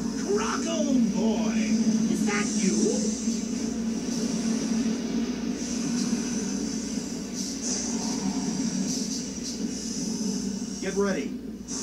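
Video game sounds play from a television's speakers.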